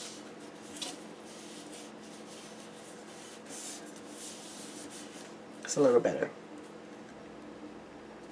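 Paper rustles and crinkles as hands move a sheet.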